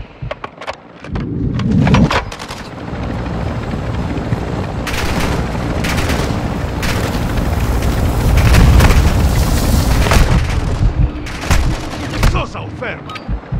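A helicopter's rotors roar nearby.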